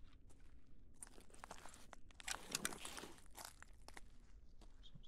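Footsteps scuff and tap softly on a hard floor.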